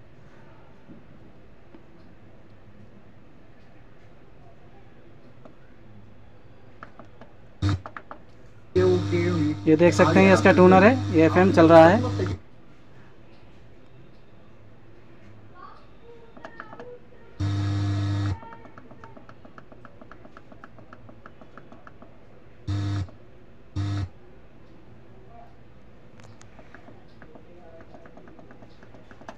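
Buttons click faintly on a radio tuner.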